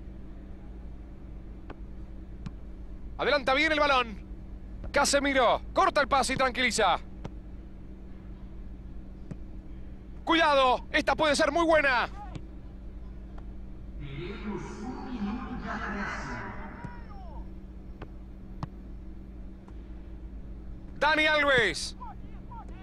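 A football is kicked across a pitch.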